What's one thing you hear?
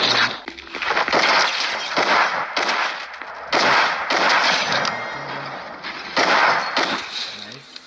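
Shotgun blasts ring out in quick bursts.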